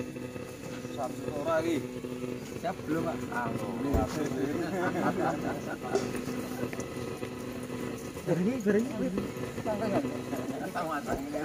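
Young men and boys talk and call out close by, outdoors.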